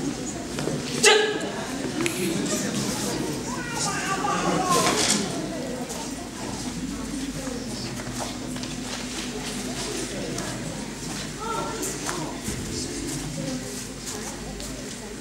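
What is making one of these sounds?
Uniform sleeves snap with quick punches.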